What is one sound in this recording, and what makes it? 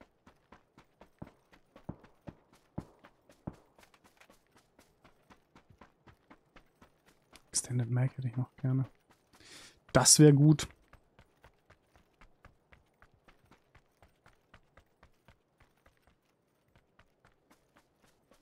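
Footsteps crunch steadily over grass and dirt at a running pace.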